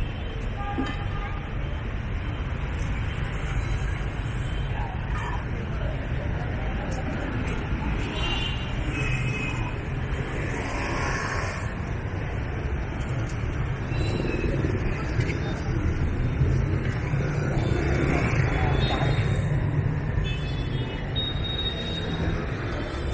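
Motor scooters and city traffic hum along a street.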